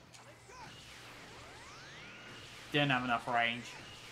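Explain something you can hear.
An energy beam fires with a rising, whooshing hum.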